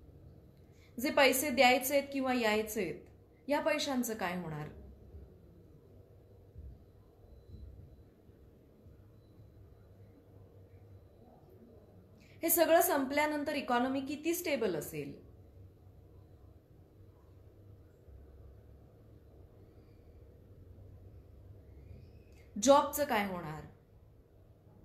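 A young woman speaks calmly and slowly close to the microphone, in short phrases with long pauses.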